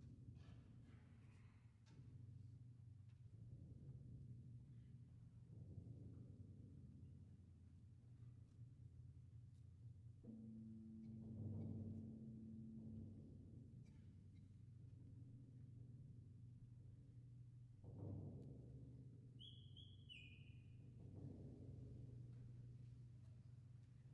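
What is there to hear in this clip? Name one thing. An orchestra plays slow, low music.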